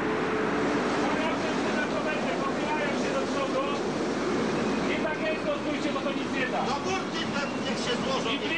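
Rough sea waves crash and churn against a ship.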